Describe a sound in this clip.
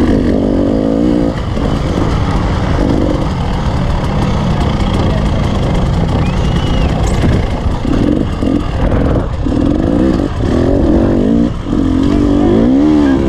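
A dirt bike engine revs hard, rising and falling as it climbs and descends.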